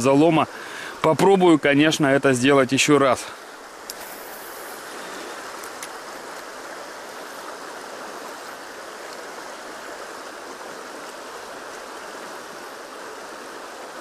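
A river flows steadily over stones close by.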